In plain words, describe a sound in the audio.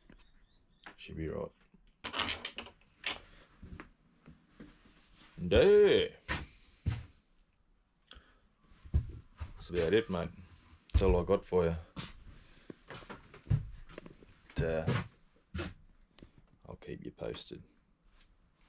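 A man talks calmly and close up, in bursts with short pauses.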